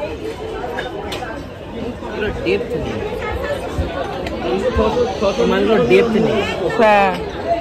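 Ceramic bowls clink together as they are handled.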